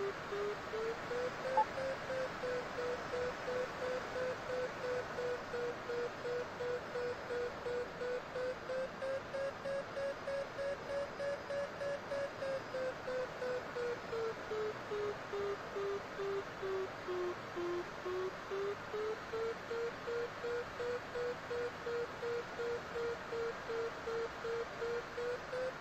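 A glider's variometer beeps in quick pulses, its pitch slowly rising and falling.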